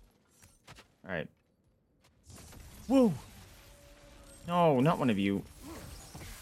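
A young man speaks with animation into a headset microphone.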